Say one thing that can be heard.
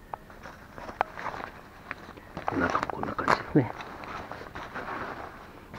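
Fabric of a jacket rustles as hands handle it.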